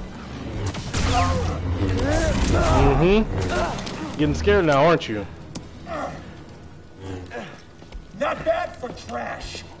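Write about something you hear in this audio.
A man talks into a headset microphone with animation.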